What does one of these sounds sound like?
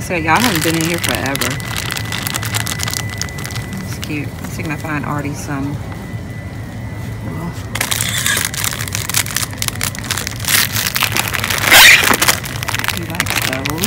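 A plastic candy bag crinkles as it is handled.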